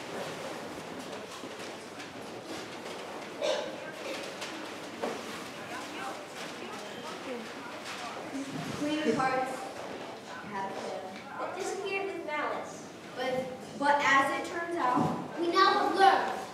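An audience murmurs quietly in a large hall.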